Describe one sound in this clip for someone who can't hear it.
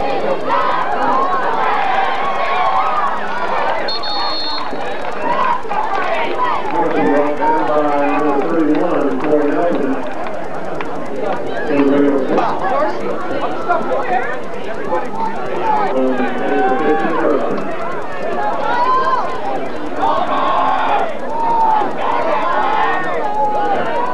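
A crowd of spectators talks and cheers nearby outdoors.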